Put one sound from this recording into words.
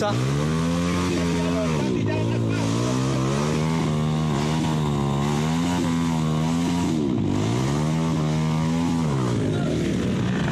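Motorcycle engines rev and whine, rising and falling.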